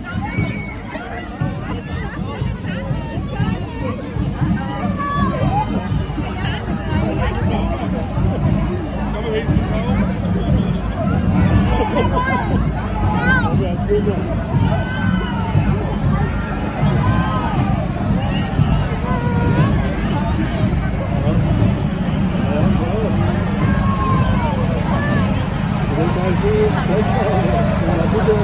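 A crowd of onlookers chatters and calls out all around, outdoors.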